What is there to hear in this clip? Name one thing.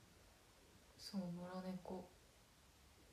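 A young woman speaks briefly and softly, close to a microphone.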